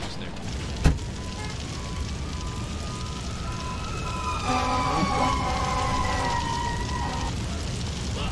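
A siren wails and glides in pitch.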